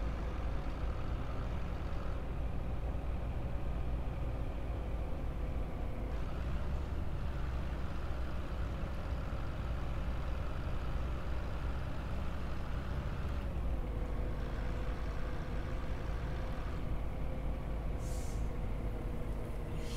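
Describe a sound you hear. A bus engine hums steadily as the bus drives along.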